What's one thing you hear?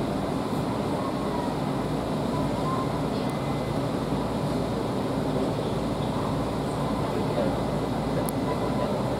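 A train rumbles steadily along the rails through a tunnel.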